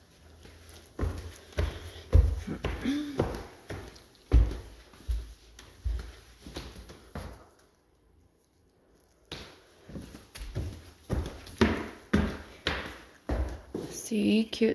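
Footsteps thud on wooden stairs, echoing in a tall open room.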